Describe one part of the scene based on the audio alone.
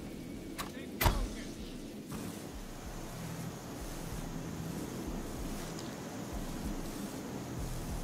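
Wire cutters snip through a metal fence.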